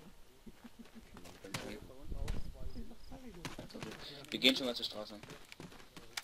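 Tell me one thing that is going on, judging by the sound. Footsteps thud quickly on grass as soldiers run.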